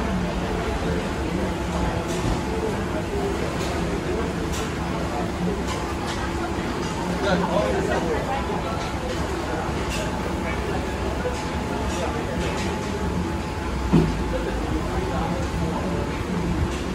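A crowd murmurs in a busy indoor hall.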